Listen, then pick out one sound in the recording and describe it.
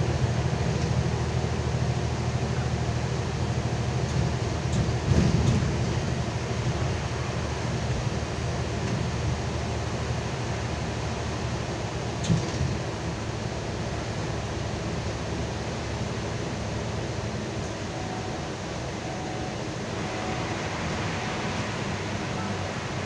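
A bus engine hums low and steady from inside the bus.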